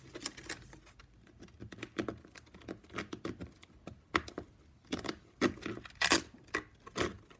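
Stiff plastic strapping band crinkles and clicks as hands weave it.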